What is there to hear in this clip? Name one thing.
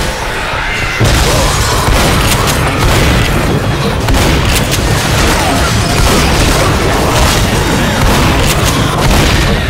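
A crowd of zombies snarls and growls up close.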